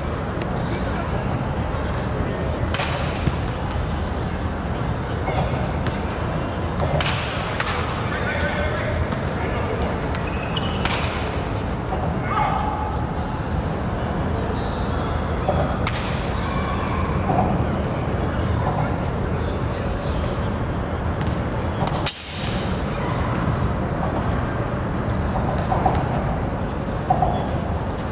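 A man calls out encouragement from nearby.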